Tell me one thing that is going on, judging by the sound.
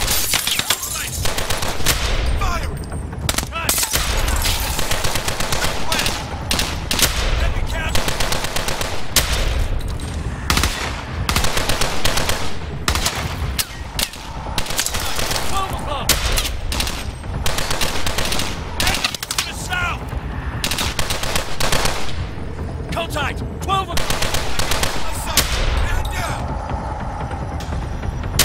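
A pistol fires single shots, loud and sharp, over and over.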